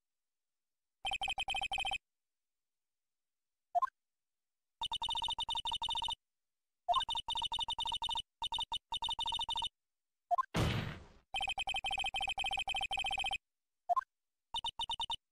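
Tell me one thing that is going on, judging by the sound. Rapid high electronic blips chatter in quick bursts.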